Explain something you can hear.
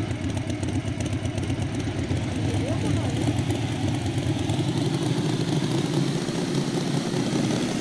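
A motorbike engine roars steadily.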